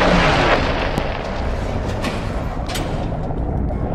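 A heavy metal door creaks open.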